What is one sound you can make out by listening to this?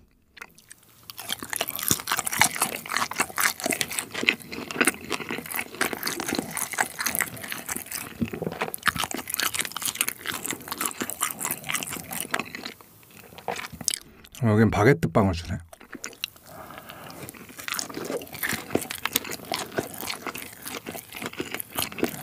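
A young man chews crispy food loudly and close to a microphone.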